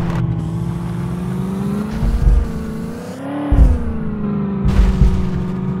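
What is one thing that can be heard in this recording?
A game engine hums steadily, its pitch rising and falling.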